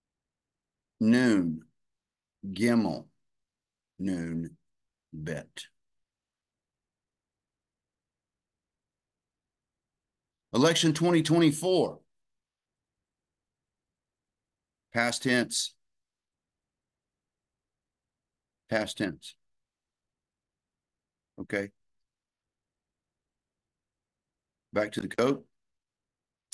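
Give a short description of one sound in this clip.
A middle-aged man speaks calmly in short phrases with pauses, heard closely through a microphone.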